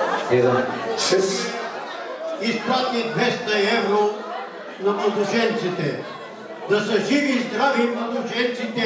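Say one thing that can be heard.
An elderly man speaks into a microphone, heard through loudspeakers.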